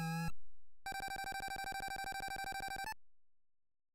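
A rapid electronic beeping ticks as a game's points count up.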